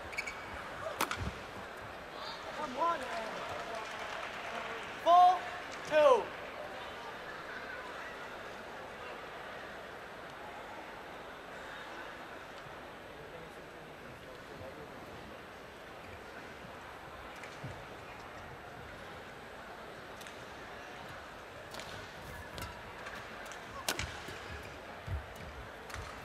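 A racket strikes a shuttlecock with sharp smacks.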